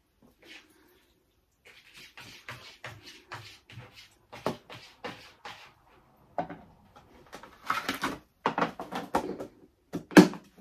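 Plastic containers knock and rattle on a counter.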